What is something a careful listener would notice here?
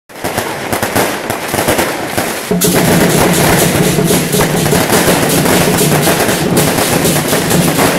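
Firecrackers crackle and pop rapidly nearby.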